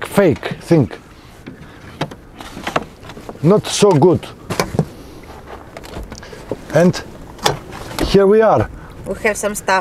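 Car seat backs thump and click as they are folded down.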